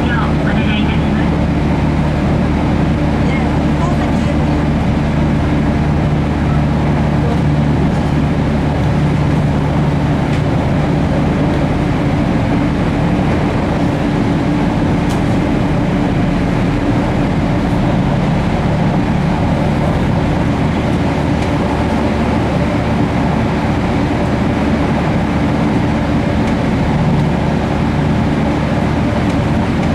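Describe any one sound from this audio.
A train rumbles steadily along the tracks at speed, heard from inside a carriage.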